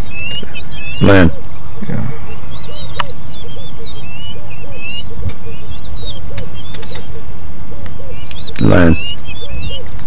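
An animal calls out loudly nearby.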